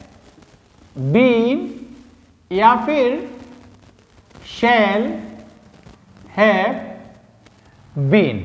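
A young man reads out words loudly in short phrases nearby.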